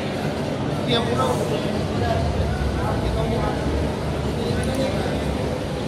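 A crowd murmurs and chatters in a large hall.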